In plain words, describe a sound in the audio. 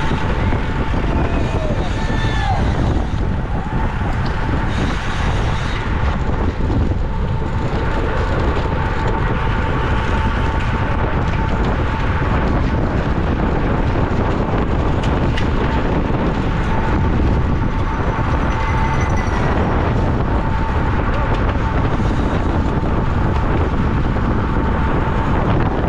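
Strong wind rushes loudly past, as if heard while riding fast outdoors.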